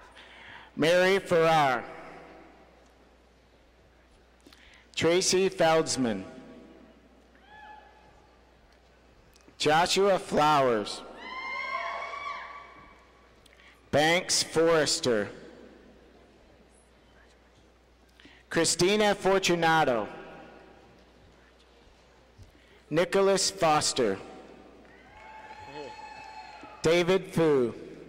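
A man's voice reads out briefly over a loudspeaker, echoing in a large hall.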